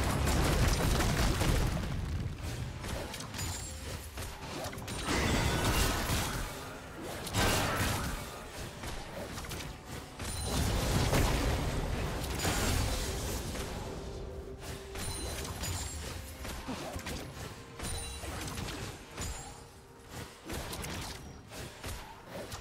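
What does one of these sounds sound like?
Video game spells burst and crackle in a busy fight.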